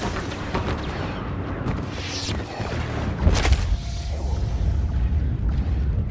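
A lightsaber hums and buzzes.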